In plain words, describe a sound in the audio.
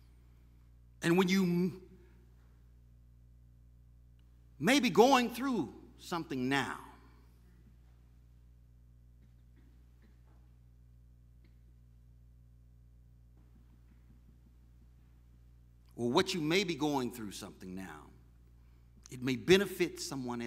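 A middle-aged man preaches forcefully into a microphone, with long pauses, in an echoing hall.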